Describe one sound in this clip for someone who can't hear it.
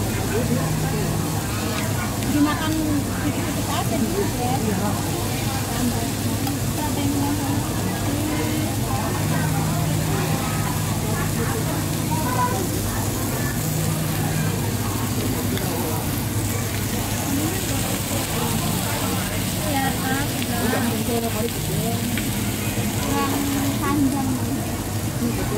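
Diners chatter in the background.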